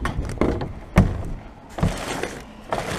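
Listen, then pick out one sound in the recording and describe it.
A plastic bin lid bangs and thumps.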